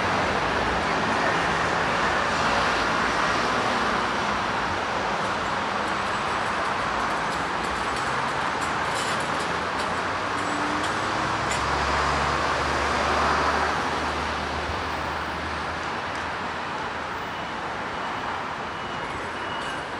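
City traffic roars steadily nearby outdoors.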